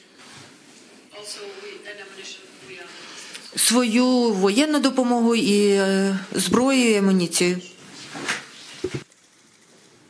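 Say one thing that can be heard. An older woman speaks clearly into a microphone.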